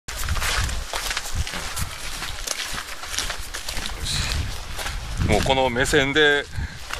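Footsteps crunch on dry grass and gravel outdoors.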